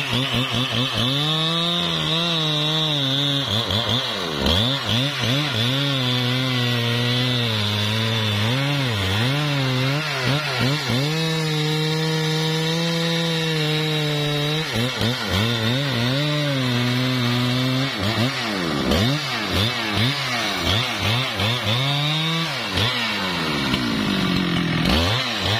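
A chainsaw engine roars loudly, rising and falling in pitch as it revs.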